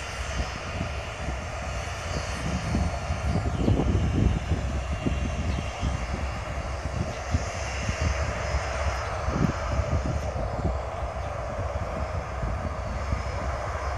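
Wind buffets outdoors with low rumbling gusts.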